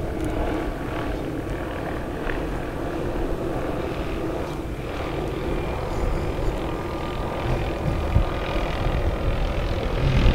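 Wind blusters outdoors, rumbling against the microphone.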